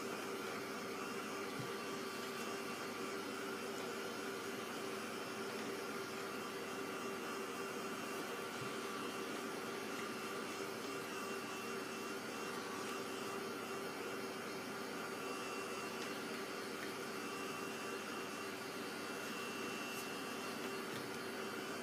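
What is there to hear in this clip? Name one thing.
A heat gun blows with a steady, loud whirring hum.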